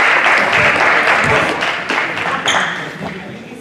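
A crowd cheers loudly in a large echoing gym.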